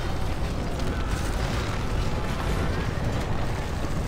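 An explosion bursts with a roar of fire.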